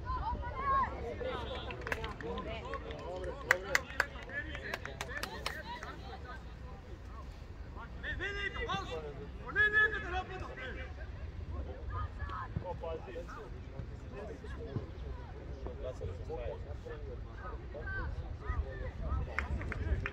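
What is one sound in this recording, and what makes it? Young players shout to each other from a distance outdoors.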